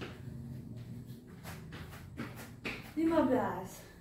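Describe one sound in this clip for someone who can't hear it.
Feet thump on a mat as a young woman jumps.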